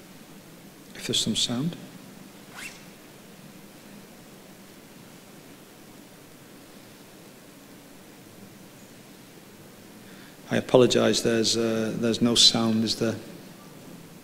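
A man speaks calmly through a microphone in short bursts.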